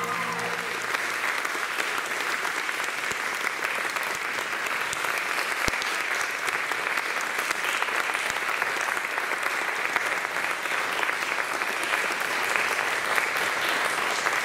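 An audience claps and applauds steadily in a large hall.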